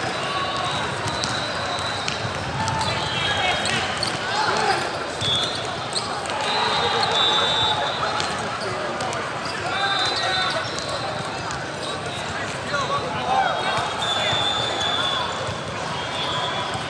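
A crowd of players and spectators murmurs and calls out in a large echoing hall.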